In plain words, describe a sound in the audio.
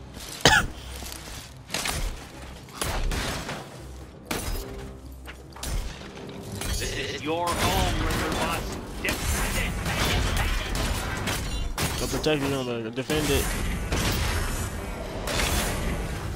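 Punches and blows land in a fight.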